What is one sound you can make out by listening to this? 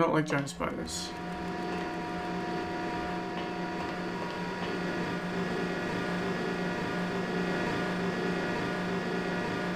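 Large machines hum steadily.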